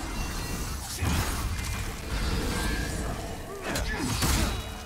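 Heavy blows crash.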